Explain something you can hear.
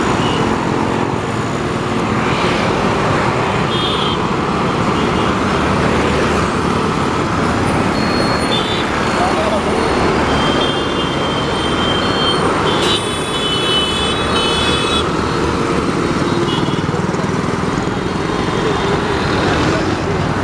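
Traffic rumbles steadily along a busy road.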